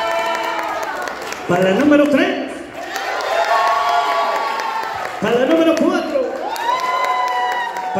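Several people clap their hands in time.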